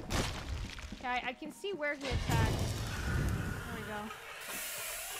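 A young woman talks with animation into a microphone.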